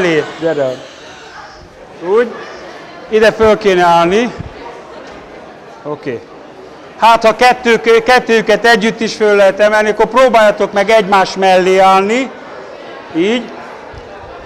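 An elderly man speaks with animation through a microphone in a large echoing hall.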